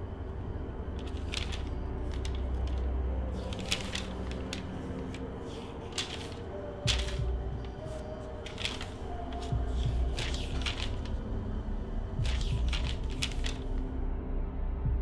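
Paper pages rustle as a notebook's pages are turned.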